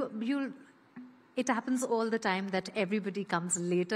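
A woman speaks calmly through a microphone.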